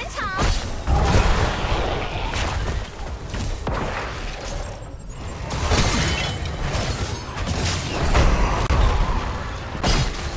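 Game spell effects whoosh and crackle in a busy battle.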